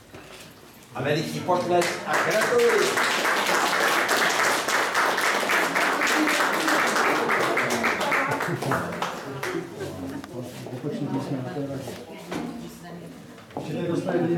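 A crowd of people chatters in a room.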